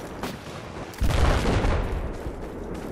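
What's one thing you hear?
A loud explosion booms nearby.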